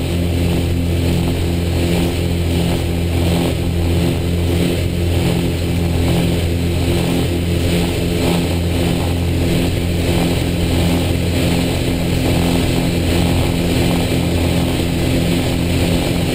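A propeller engine drones loudly and steadily inside a small plane's cockpit.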